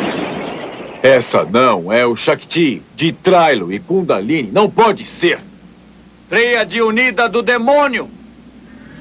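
A young man speaks tensely.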